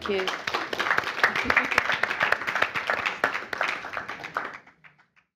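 An audience applauds in a room, with dense clapping that fades out.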